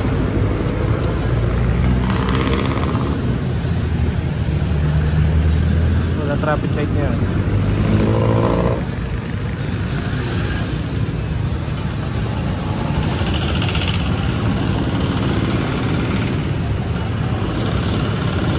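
Traffic rumbles along a busy street outdoors.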